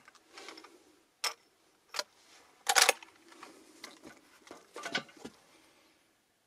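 A rifle's metal parts click and clack as it is loaded.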